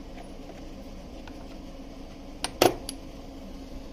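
Metal sockets clink against each other in a tray.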